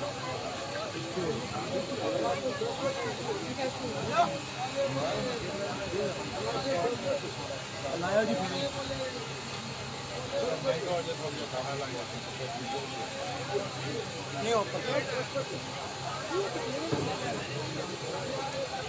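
A crowd of men talk and murmur outdoors nearby.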